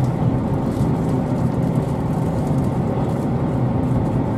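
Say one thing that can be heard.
A passing train rushes by close outside.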